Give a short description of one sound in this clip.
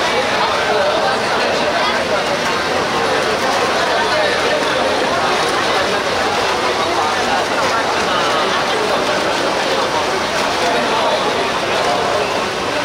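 A large crowd outdoors chatters and calls out loudly all around.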